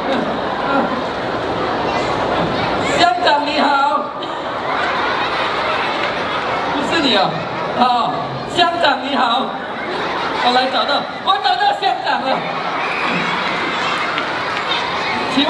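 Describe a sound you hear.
A large crowd of children and adults chatters throughout a large echoing hall.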